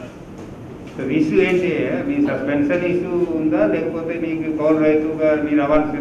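A man speaks steadily into microphones, close by.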